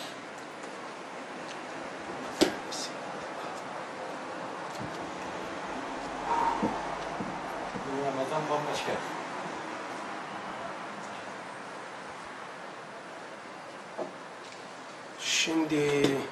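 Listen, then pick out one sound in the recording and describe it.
Book pages rustle as an older man leafs through them.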